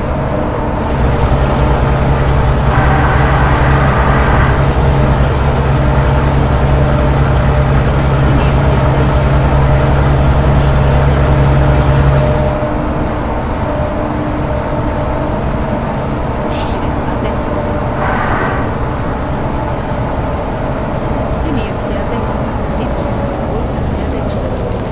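A truck engine drones loudly and steadily, then drops to a softer hum.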